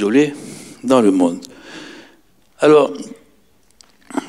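An elderly man speaks through a microphone in a large echoing hall, in short bursts.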